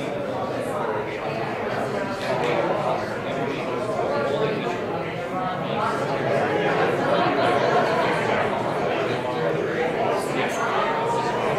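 Many people chatter at once in a room with echoes.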